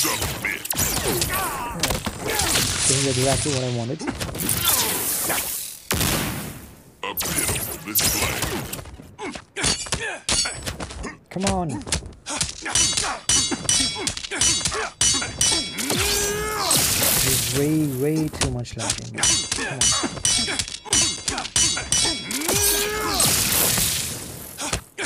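Energy beams blast and crackle loudly.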